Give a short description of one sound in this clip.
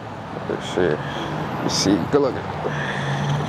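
A young man talks nearby, outdoors.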